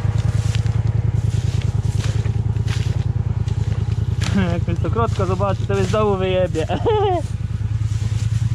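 A string trimmer engine drones steadily up close.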